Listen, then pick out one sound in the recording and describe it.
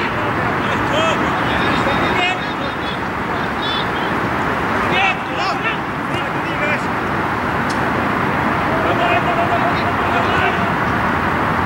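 Men shout to each other across an open field in the distance.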